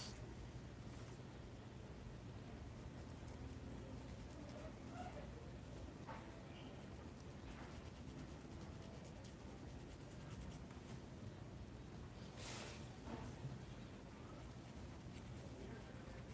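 A paintbrush softly brushes across fabric.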